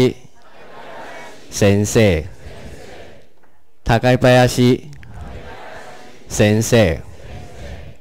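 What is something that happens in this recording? A man speaks clearly into a handheld microphone in short phrases, like a teacher reading out words.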